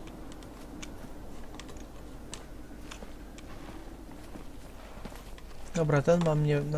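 Soft footsteps scuff on stone.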